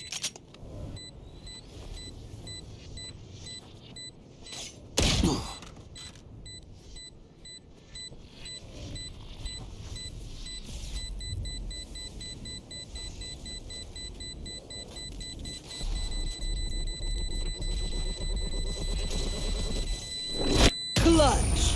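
An electronic device beeps, faster and faster.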